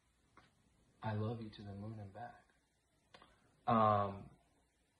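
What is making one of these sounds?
A man speaks close up, warmly and with expression.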